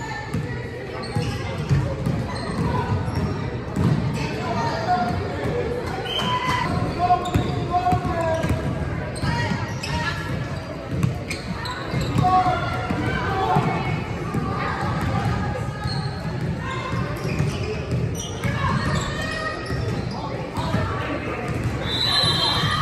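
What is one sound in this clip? Young women call out to one another during play.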